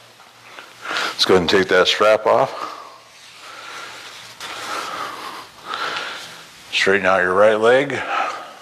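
A man talks in an echoing hallway.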